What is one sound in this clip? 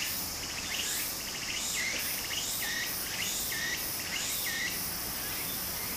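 Shallow water trickles and babbles steadily over stones.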